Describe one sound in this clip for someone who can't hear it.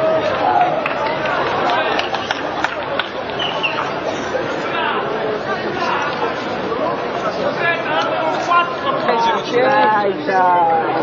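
A large outdoor crowd of young men and women chatters, with many voices overlapping.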